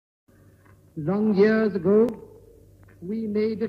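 An elderly man speaks slowly through a microphone.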